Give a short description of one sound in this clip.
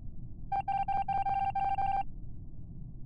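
A video game plays a sustained chime.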